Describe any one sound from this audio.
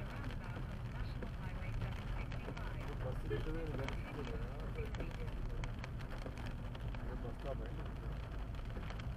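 Raindrops tap on a car windscreen.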